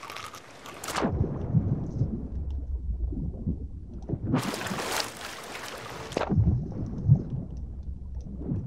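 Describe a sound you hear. Water rumbles deep and muffled as if heard underwater.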